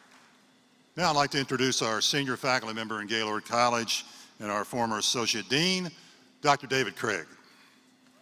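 An older man speaks calmly into a microphone in a large echoing hall.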